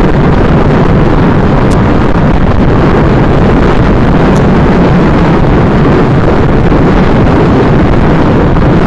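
A car engine hums steadily under loud road and wind noise.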